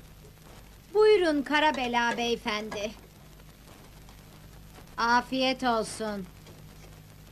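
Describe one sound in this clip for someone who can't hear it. A middle-aged woman talks nearby in a calm voice.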